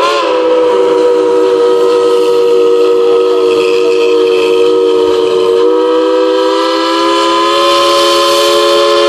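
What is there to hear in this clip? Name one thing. A steam locomotive sounds a long whistle nearby.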